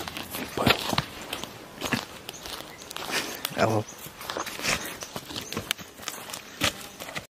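Feet scuff and shuffle on dry, gravelly ground outdoors.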